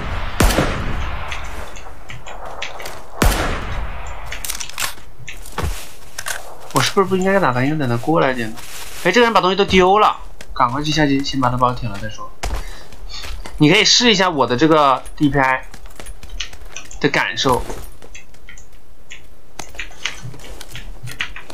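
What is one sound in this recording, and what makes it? Footsteps crunch quickly over sand and gravel.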